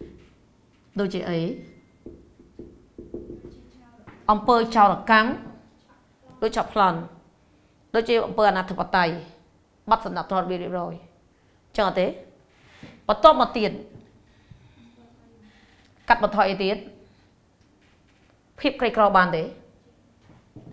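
A woman speaks calmly and clearly, with pauses.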